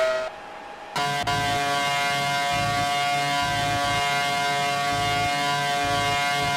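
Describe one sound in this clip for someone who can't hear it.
A racing car engine whines steadily at high revs up close.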